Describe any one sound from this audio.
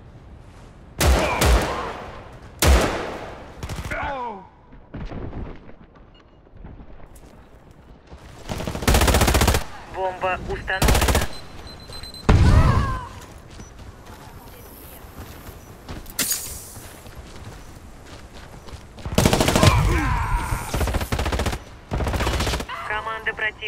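Guns fire in loud rapid bursts.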